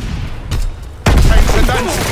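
A loud explosion booms and roars nearby.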